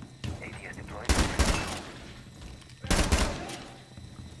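A rifle fires short, loud bursts of shots.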